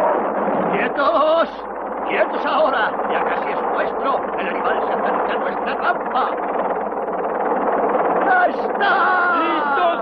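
A man talks with animation over a headset radio.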